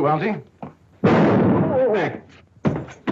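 Glass shatters loudly.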